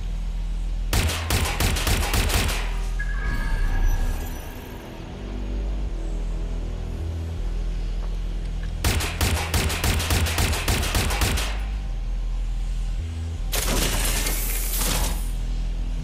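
A pistol fires rapid shots in short bursts.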